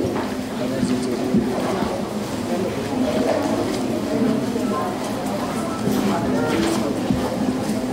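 A man speaks through a microphone over loudspeakers.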